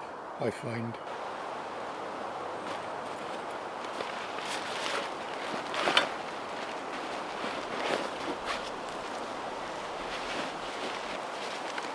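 A man rummages through a rustling bag.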